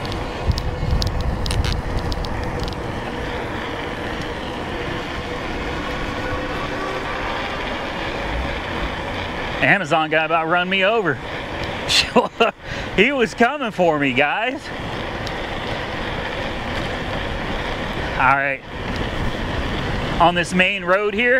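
Wheels roll steadily over rough pavement.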